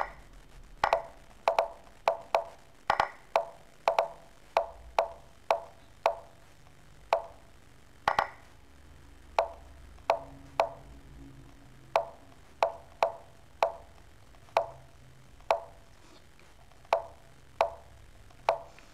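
Chess pieces click sharply onto a board in quick succession.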